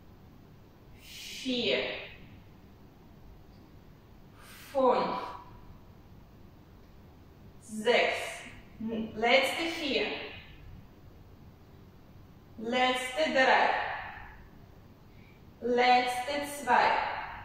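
A young woman gives calm instructions in short phrases with pauses, in a large echoing room.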